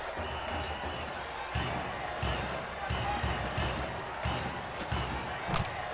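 Trumpets play a cheering tune.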